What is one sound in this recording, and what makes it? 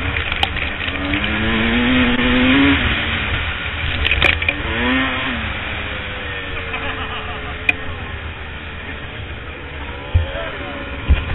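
A dirt bike engine roars and revs up close.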